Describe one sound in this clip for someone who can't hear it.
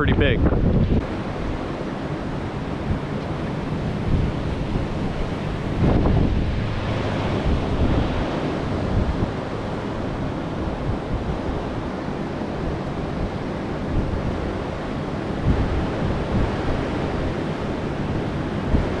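Ocean waves break and wash onto the shore.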